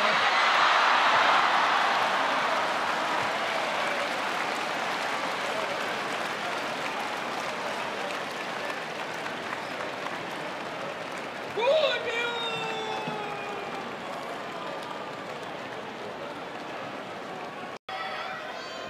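A large crowd cheers and murmurs in a big echoing hall, slowly quieting.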